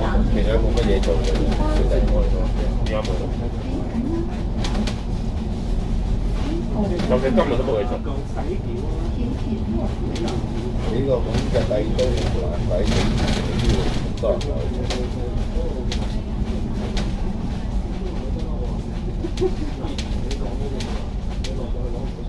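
The bus rattles and creaks as it moves.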